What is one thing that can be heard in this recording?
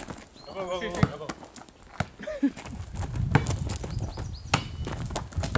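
A foot kicks a ball with a dull thump.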